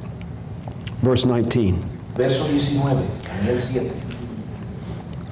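A man speaks calmly into a microphone over a loudspeaker in a large echoing hall.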